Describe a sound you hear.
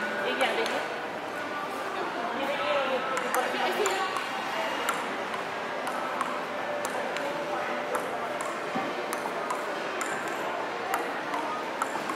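A ping-pong ball clicks sharply back and forth off paddles and a table.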